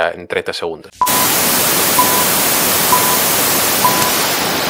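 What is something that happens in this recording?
Loud television static hisses steadily.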